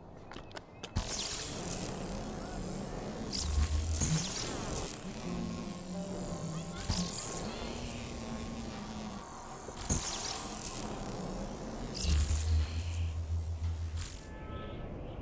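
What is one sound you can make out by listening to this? Energy blasts whoosh and crackle in bursts.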